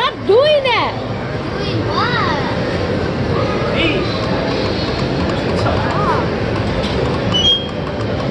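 Arcade machines chirp and jingle with bright electronic tones.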